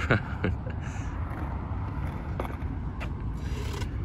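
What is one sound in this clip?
A skateboard's tail knocks sharply against a concrete ledge.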